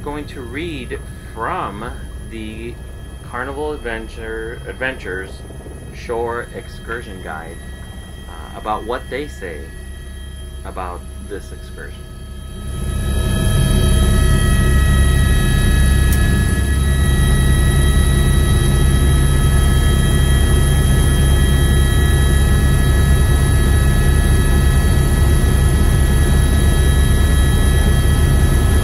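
A helicopter engine and rotor drone steadily, growing much louder as the helicopter lifts off.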